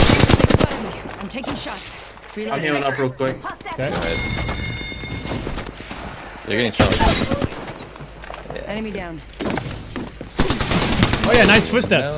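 Gunfire rattles in quick bursts.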